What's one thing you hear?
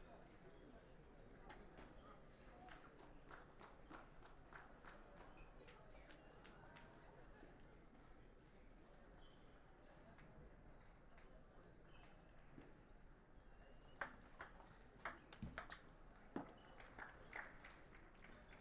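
A ball bounces and clicks off paddles and a table in quick rallies.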